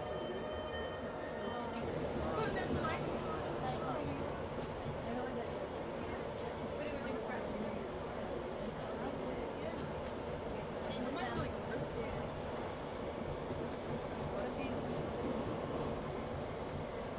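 A train rumbles along the track, heard from inside the carriage.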